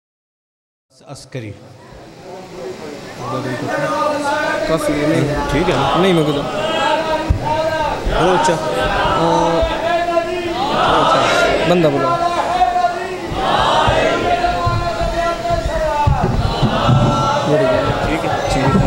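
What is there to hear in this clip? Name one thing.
A teenage boy chants into a microphone through loudspeakers, echoing in a large space.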